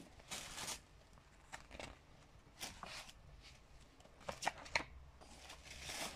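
Book pages rustle and flip as they are turned.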